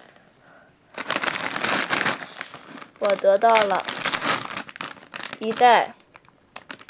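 A plastic snack bag crinkles as it is handled.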